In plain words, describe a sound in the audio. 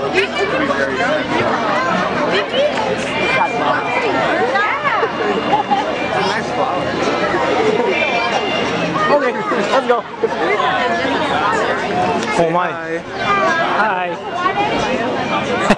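Several people chat and call out nearby outdoors.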